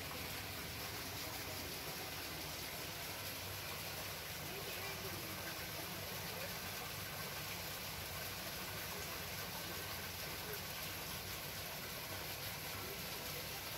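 Water gushes steadily from a pipe and splashes into a pool.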